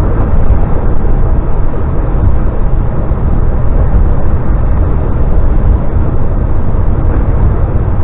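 A vehicle's engine rumbles steadily while driving at speed.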